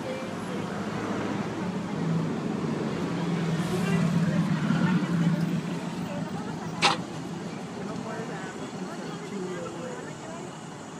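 A large vehicle's engine idles nearby.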